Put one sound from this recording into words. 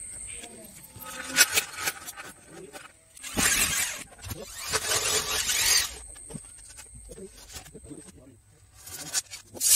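Metal strips clatter and knock.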